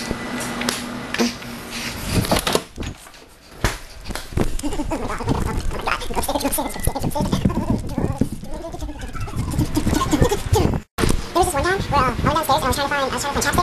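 Handling noise thumps and rustles close by.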